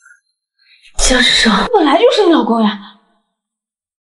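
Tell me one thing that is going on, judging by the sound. A young woman speaks emotionally close by.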